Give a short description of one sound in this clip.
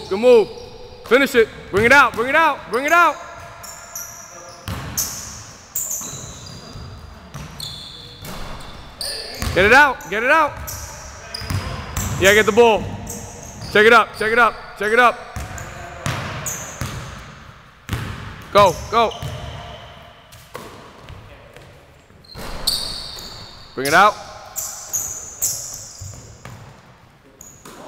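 A basketball thumps on a wooden floor.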